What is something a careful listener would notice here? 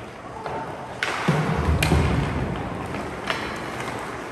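Hockey sticks smack a puck with sharp cracks.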